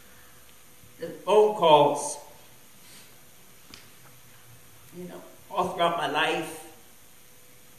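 A middle-aged man speaks slowly into a microphone, in short phrases with long pauses, heard through a loudspeaker.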